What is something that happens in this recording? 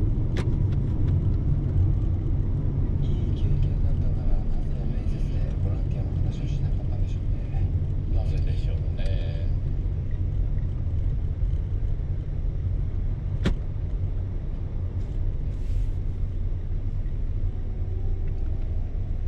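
A large vehicle's engine rumbles steadily from inside the cab.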